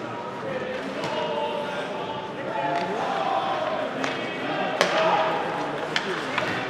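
Hockey sticks clack sharply against a puck now and then.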